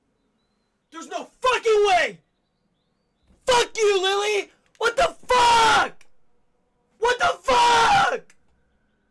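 A young man shouts and yelps loudly into a close microphone.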